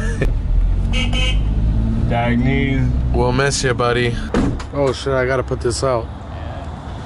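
A car engine rumbles low from inside the car.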